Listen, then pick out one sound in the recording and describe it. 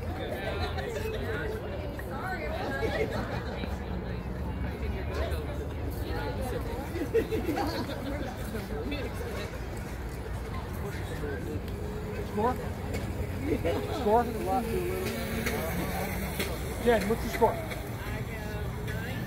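Several men and women talk and call out nearby, outdoors.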